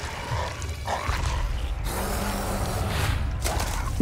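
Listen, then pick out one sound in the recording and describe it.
A large beast roars and growls.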